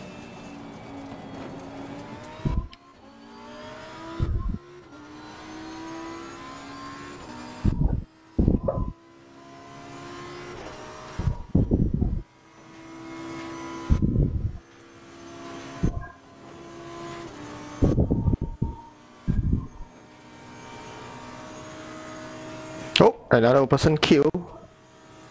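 A racing car engine roars and revs up through the gears.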